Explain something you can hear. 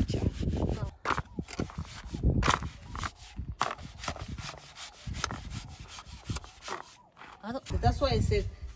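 A shovel scrapes and scoops through wet cement.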